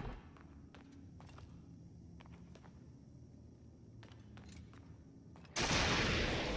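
Footsteps tap on a hard stone floor in a large echoing hall.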